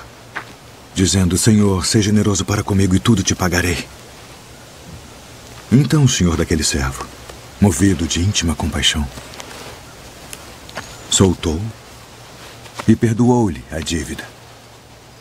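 Two men talk calmly with each other close by.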